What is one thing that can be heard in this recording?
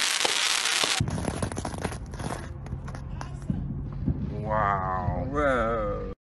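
A firework fizzes and sputters on the ground.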